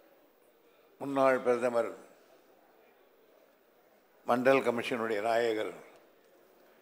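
An elderly man speaks in short, measured phrases over a microphone.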